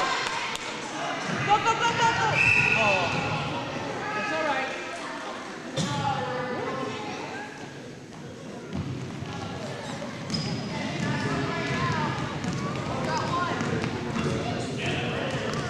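Children shout and chatter in a large echoing gym.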